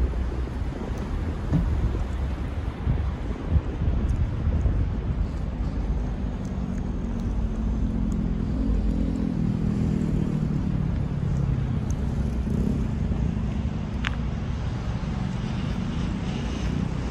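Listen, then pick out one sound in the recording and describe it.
Traffic hums steadily in the distance outdoors.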